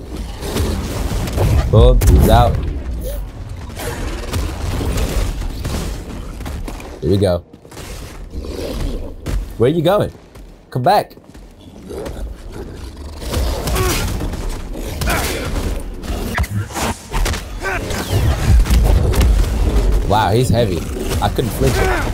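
Blows thud and clash during a fight.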